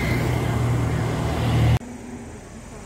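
A scooter engine hums as a scooter passes close by.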